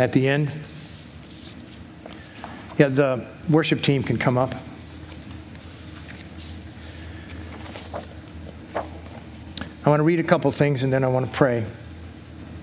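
An older man speaks slowly with pauses through a microphone in a large hall.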